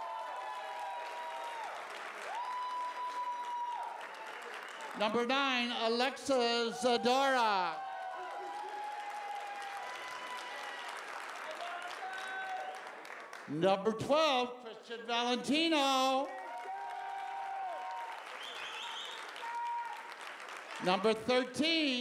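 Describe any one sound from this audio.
Hands clap in applause.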